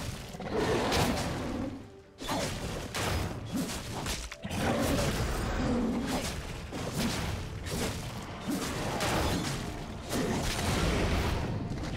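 Magic spells blast and crackle in a fast video game fight.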